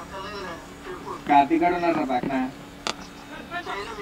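A cricket bat strikes a ball far off.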